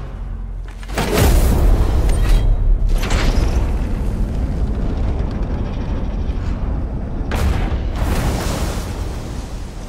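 A deep, booming rumble swells and roars loudly.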